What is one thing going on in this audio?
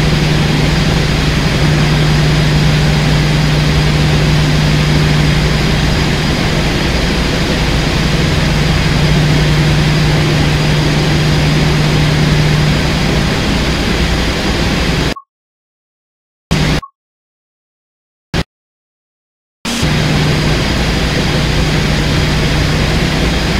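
A diesel locomotive engine drones steadily with a low hum.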